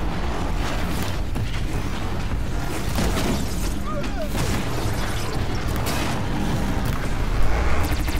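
A bow string twangs as arrows are fired.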